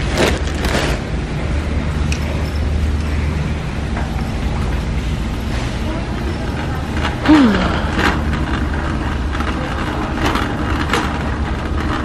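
A shopping cart rattles as it rolls over a concrete floor.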